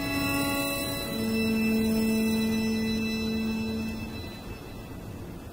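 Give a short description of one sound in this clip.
A small ensemble plays soft, sustained notes in a large hall.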